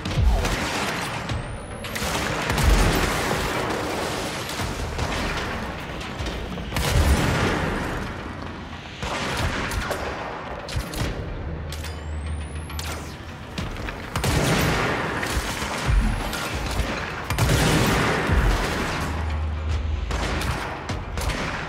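A pistol fires repeated shots.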